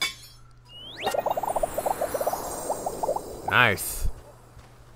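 Bright sparkling chimes ring out.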